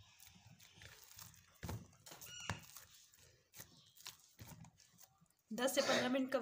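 Hands knead soft dough with quiet squishing and patting.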